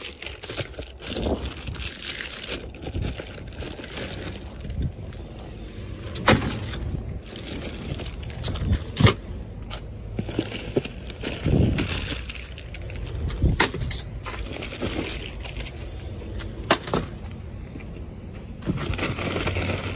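Plastic snack wrappers crinkle and rustle close by.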